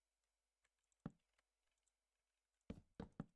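Wooden blocks are placed with short hollow knocks.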